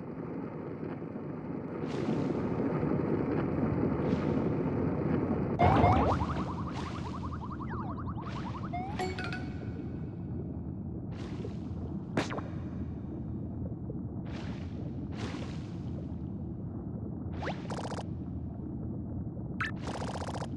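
Low, rumbling game music plays steadily.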